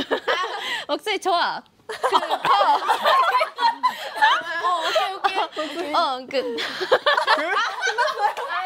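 Young women talk and laugh excitedly close by.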